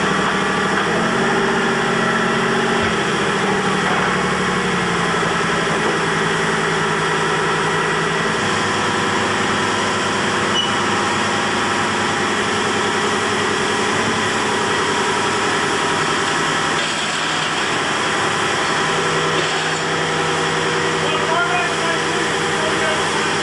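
A heavy engine drones loudly and steadily.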